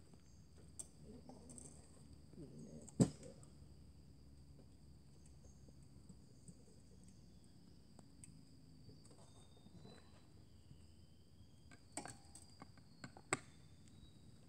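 Hard plastic pieces knock and clatter on a table.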